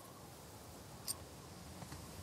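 A game menu gives a short click as its page changes.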